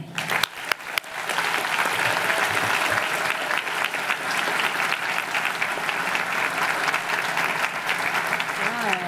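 An audience claps steadily outdoors.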